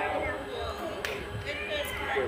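A bat sharply cracks against a softball.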